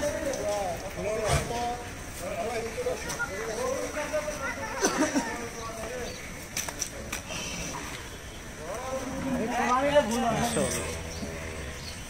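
Young men shout and call out nearby.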